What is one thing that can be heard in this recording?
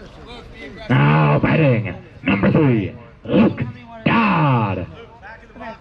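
Young players shout loudly together in a chant.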